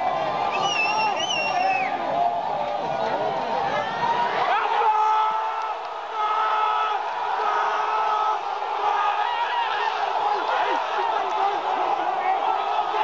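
A large stadium crowd cheers and chants loudly outdoors.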